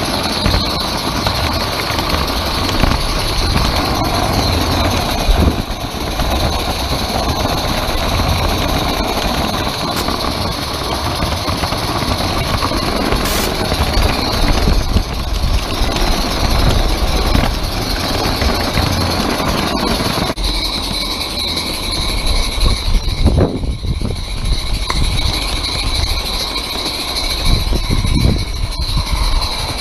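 Wheels of a small train clatter steadily along metal rails close by.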